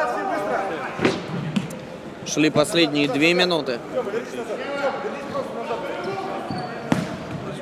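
A ball is kicked with a sharp thud in a large echoing hall.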